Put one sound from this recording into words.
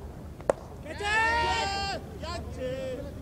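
Men shout loudly across an open field.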